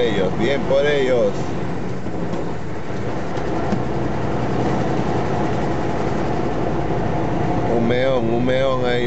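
Heavy truck engines rumble steadily nearby.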